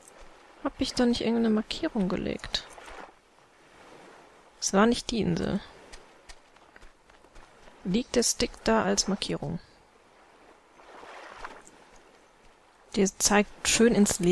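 Small waves lap gently against a sandy shore.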